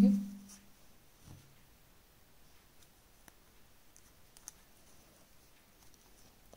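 Yarn and a metal crochet hook rustle and tick softly as hands crochet.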